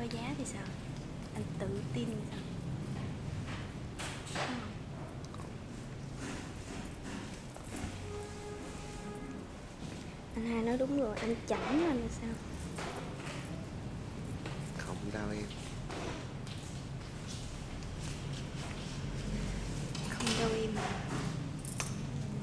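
Voices murmur in the background of a busy room.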